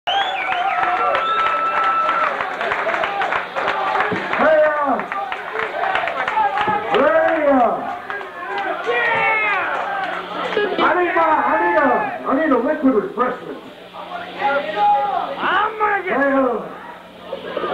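An electric guitar plays distorted chords.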